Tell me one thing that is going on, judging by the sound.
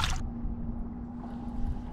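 Water splashes briefly.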